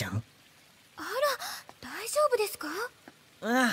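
A young woman asks a question with concern.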